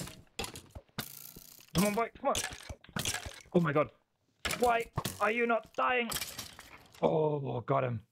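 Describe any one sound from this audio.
A sword strikes a bony creature with dull thuds.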